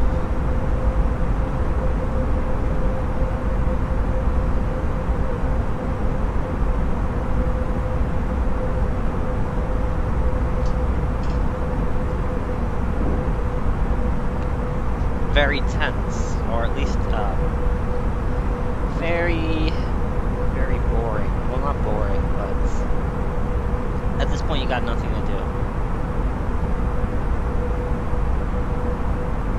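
A steady low drone of jet engines fills the cabin.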